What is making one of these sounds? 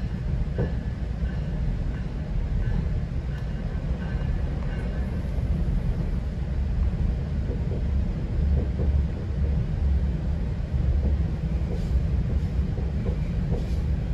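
Train wheels click and clatter over the rails.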